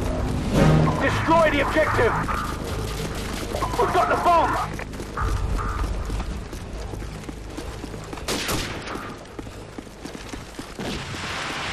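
Footsteps run quickly over the ground.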